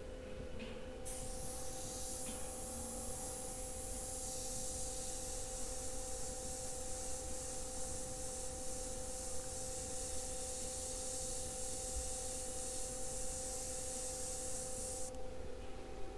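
An airbrush hisses steadily, close by.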